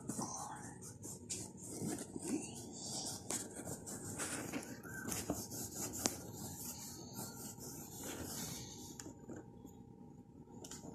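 A crayon scratches and rubs on paper close by.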